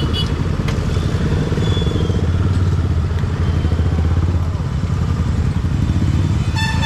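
Wind buffets loudly as the motorcycle rides.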